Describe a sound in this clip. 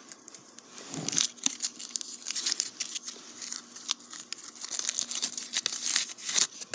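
A candy wrapper crinkles and rustles close by.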